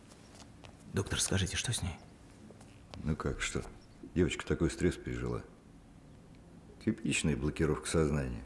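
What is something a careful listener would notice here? A middle-aged man speaks in a low, urgent voice close by.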